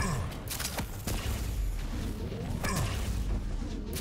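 An electric beam weapon crackles and buzzes.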